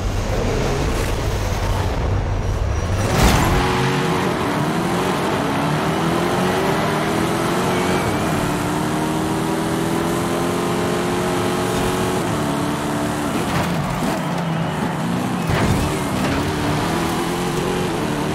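A car engine roars loudly and revs up through the gears.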